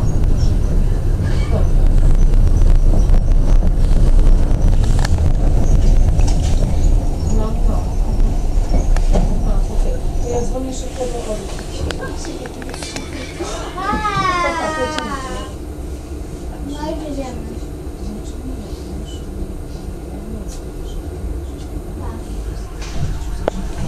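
Tram wheels clack over track switches and crossings.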